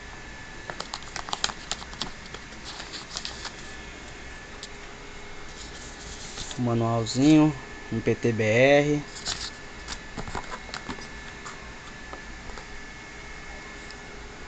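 Paper and cardboard rustle as a box is handled.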